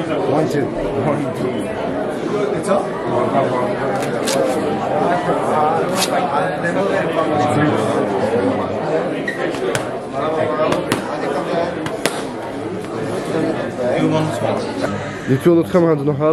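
Several men talk and laugh nearby.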